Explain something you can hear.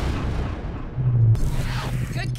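A sci-fi energy gun fires with a loud, sharp blast.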